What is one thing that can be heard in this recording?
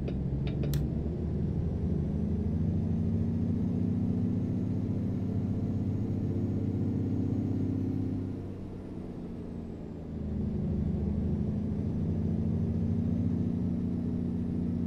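A heavy truck engine rumbles steadily from inside the cab, easing off briefly before pulling again.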